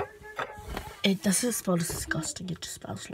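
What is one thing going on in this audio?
A young woman talks with animation close to a phone microphone.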